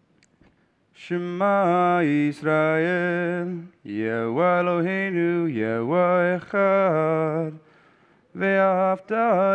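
A man chants in a steady sung voice through a microphone in an echoing hall.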